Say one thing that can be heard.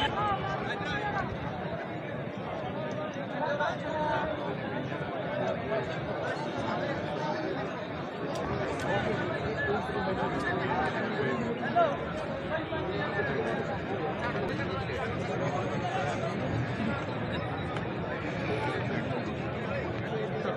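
A large crowd of men talks and murmurs outdoors.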